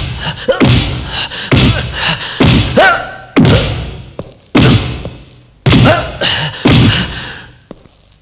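A stick strikes a body again and again with loud, sharp whacks that ring out in an echoing room.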